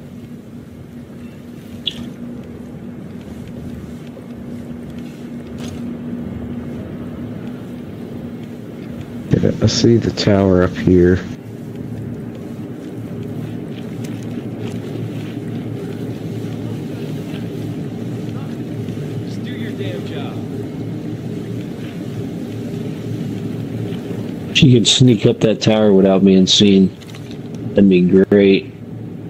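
Footsteps crunch softly on hard ground.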